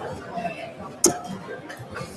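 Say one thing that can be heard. A dart thuds into a dartboard.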